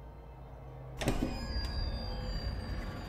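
A door creaks open.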